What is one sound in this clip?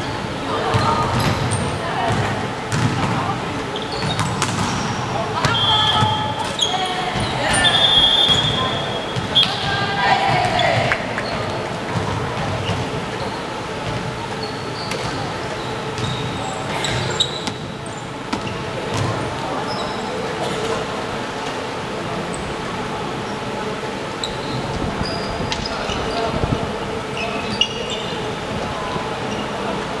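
Sneakers squeak on the hard floor.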